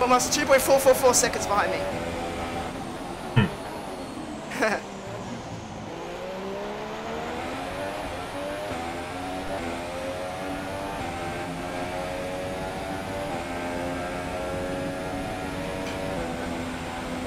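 A racing car engine whines, its pitch rising and falling through gear changes.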